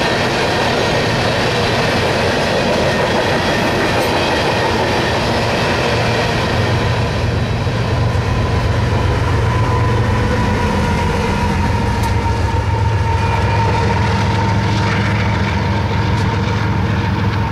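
Diesel freight locomotives rumble past under load.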